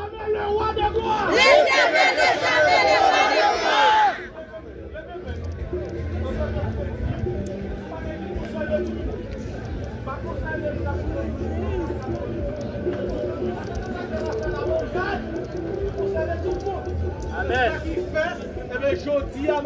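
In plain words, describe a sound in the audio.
A crowd of men and women pray aloud together outdoors.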